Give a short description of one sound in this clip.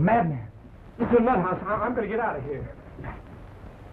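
A second man answers urgently.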